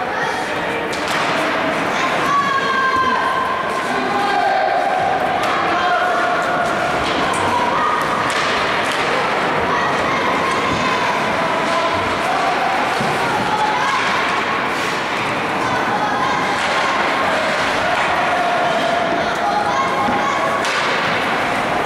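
Hockey sticks clack against the puck and the ice.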